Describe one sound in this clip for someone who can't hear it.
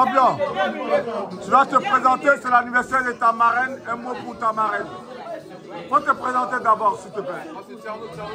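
An elderly woman talks excitedly close by.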